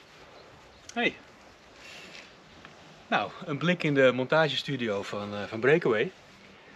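A middle-aged man talks with animation close by.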